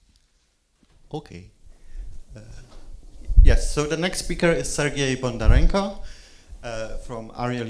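A man speaks into a microphone in a large, echoing hall.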